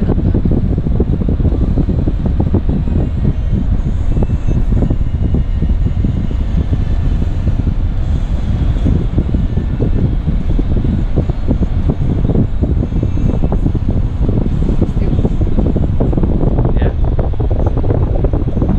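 Wind buffets loudly against a moving car's microphone.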